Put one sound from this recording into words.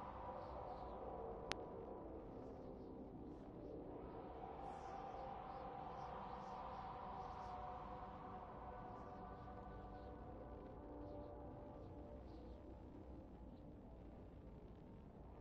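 A spacecraft engine roars steadily.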